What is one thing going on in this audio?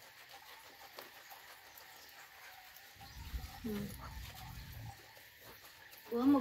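Hands rub soapy lather into a wet puppy's fur.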